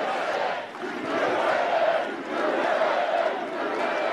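A crowd claps.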